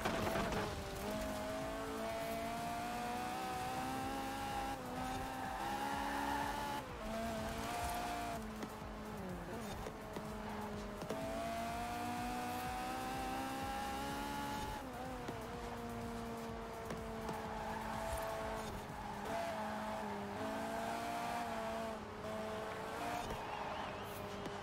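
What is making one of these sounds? A car engine roars at high revs, rising and dropping in pitch as gears change.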